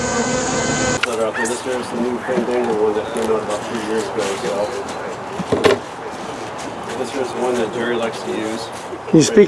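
A man talks calmly nearby outdoors.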